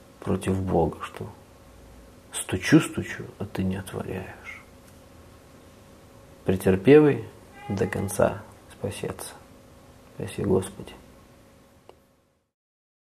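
A middle-aged man speaks calmly and close to a microphone.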